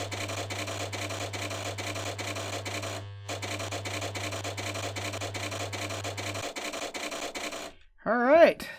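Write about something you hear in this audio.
A stove timer ticks steadily and quickly.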